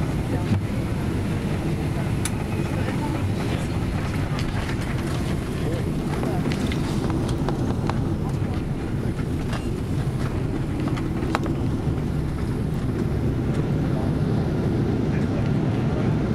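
An airliner's wheels rumble and thump over a runway.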